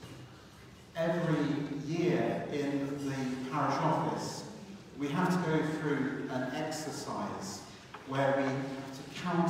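A man speaks steadily into a microphone in a large echoing hall.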